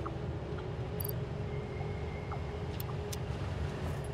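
Soft electronic clicks sound as a menu is used.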